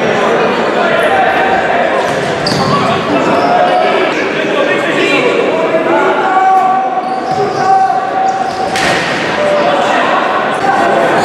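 A crowd murmurs and chants in a large echoing hall.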